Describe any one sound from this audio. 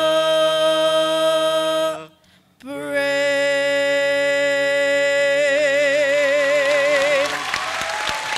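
A young man sings long held notes through a microphone in a large hall.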